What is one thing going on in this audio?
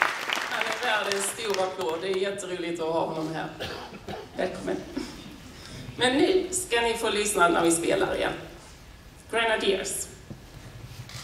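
A woman speaks calmly into a microphone over loudspeakers in a large hall.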